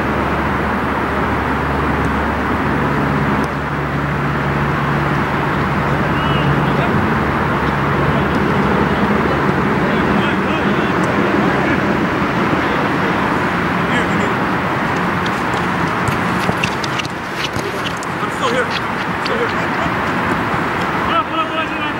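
Players shout to each other from across the field.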